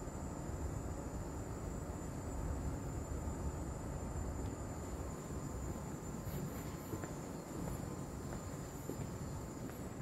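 Ventilation hums steadily in a large echoing hall.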